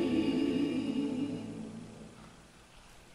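A small group sings together in a reverberant hall.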